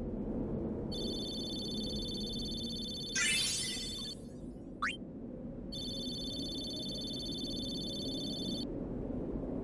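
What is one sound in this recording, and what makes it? A rapid electronic ticking tone sounds as a game's score counts up.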